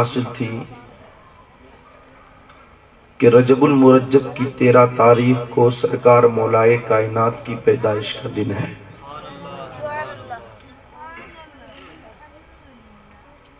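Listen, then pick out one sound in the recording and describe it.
A man chants loudly and melodiously through a microphone, heard over loudspeakers in a reverberant space.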